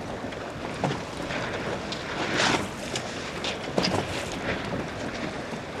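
Sails flap and rustle in the wind.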